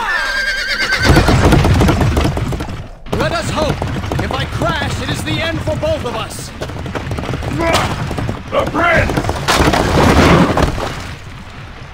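Horses' hooves pound on the ground.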